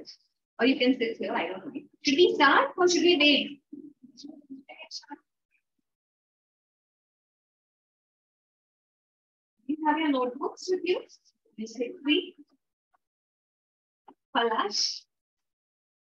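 A young woman speaks with animation into a nearby microphone, in short bursts with pauses.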